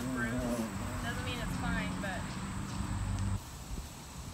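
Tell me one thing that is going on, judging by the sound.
A young girl talks nearby outdoors.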